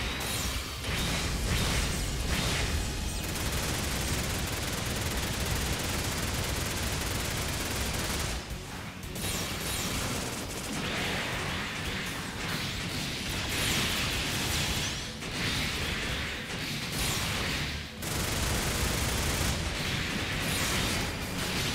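Explosions and energy strikes crackle loudly.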